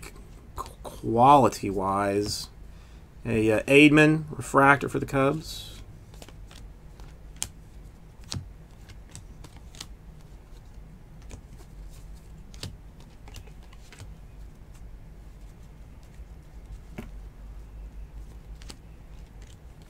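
Trading cards shuffle and flick softly against each other, close by.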